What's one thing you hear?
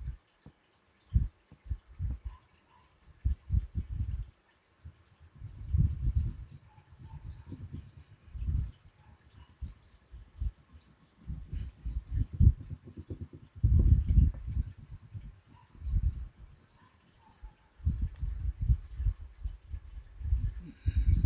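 A paintbrush dabs and scrapes against a board close by.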